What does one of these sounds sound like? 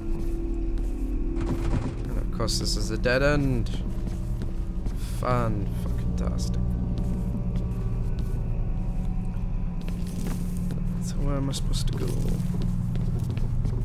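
Footsteps walk slowly over a hard floor.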